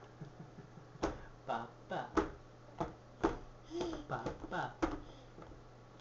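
A baby girl babbles and squeals excitedly close by.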